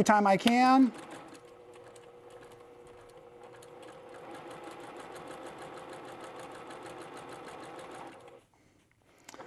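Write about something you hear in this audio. A sewing machine hums steadily as it stitches.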